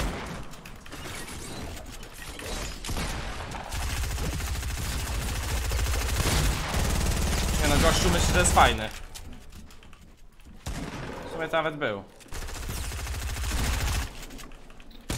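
Video game building sounds clatter rapidly.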